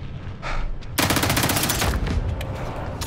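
A rifle fires a loud shot that echoes.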